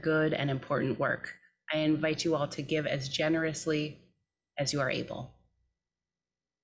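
A young woman speaks calmly into a microphone in an echoing hall.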